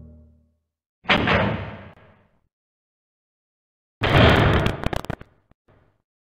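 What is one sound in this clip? A heavy door creaks and swings open.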